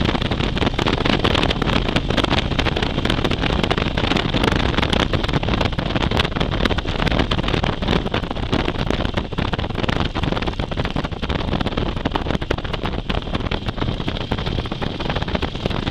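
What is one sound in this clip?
A motorcycle engine hums steadily while cruising.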